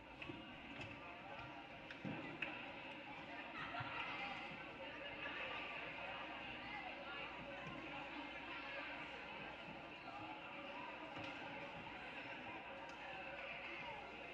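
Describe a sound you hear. A small crowd murmurs and chatters in a large echoing gym.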